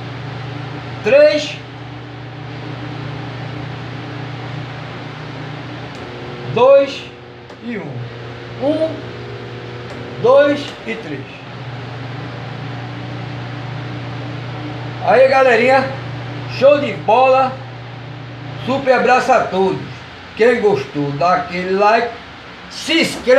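A man speaks close by in a calm, chatty voice.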